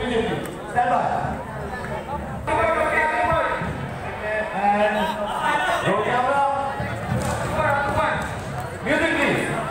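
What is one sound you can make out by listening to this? A crowd cheers and sings along.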